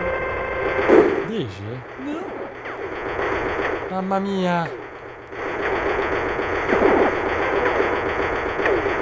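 Electronic arcade game bleeps, zaps and chirps sound rapidly.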